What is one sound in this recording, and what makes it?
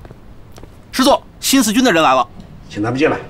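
A man reports briefly in a raised voice.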